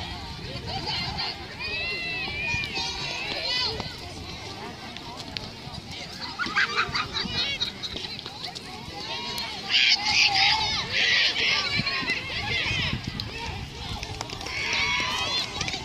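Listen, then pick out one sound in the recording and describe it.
A crowd of young women cheers and shouts outdoors.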